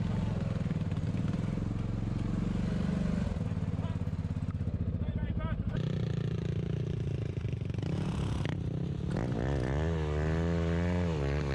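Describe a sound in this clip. A quad bike's engine revs up and down loudly.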